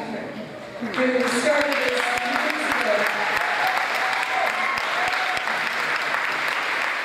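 An audience claps and cheers.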